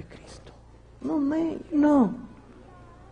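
A young man answers in a high, drawn-out puppet voice.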